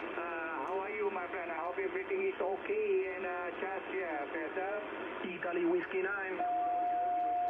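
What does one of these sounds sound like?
A radio loudspeaker plays warbling, distorted speech.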